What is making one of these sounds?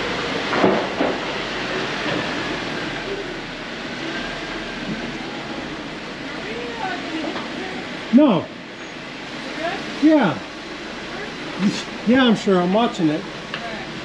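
A vehicle engine rumbles steadily, echoing in an enclosed tunnel.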